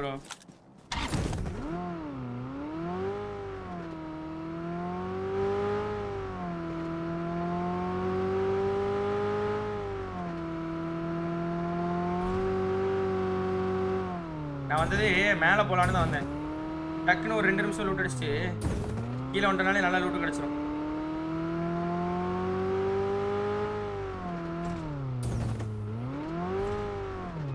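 A car engine revs and hums steadily, rising and falling in pitch.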